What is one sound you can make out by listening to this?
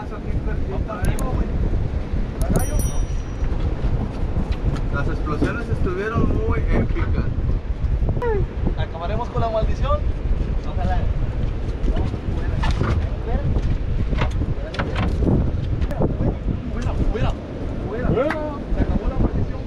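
Wind rushes over open water outdoors.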